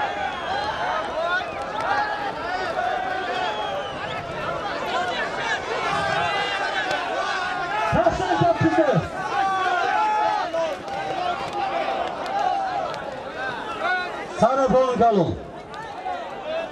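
A large crowd of men shouts and cheers outdoors.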